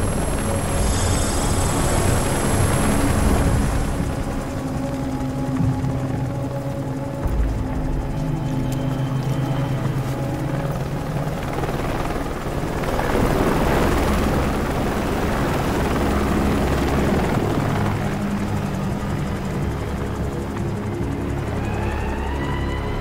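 A helicopter's rotor thumps loudly and steadily overhead.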